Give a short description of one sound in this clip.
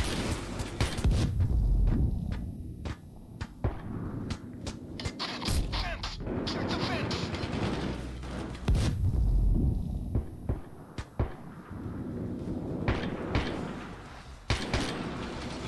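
A high ringing tone follows a loud bang.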